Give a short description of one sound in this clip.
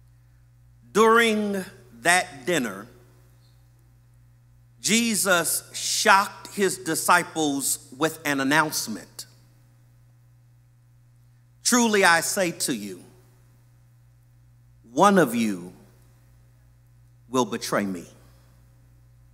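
A man speaks slowly and deliberately into a microphone, in bursts with long pauses.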